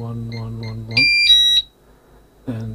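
An alarm keypad plays a short, high two-note chime.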